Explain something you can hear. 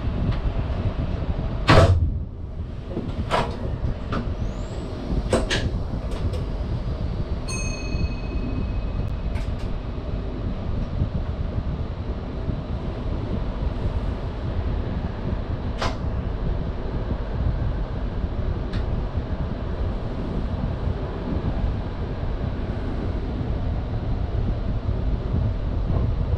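A train's engine hums low and steady.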